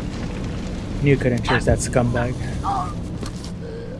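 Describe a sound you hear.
A man speaks in a low, menacing voice, close by.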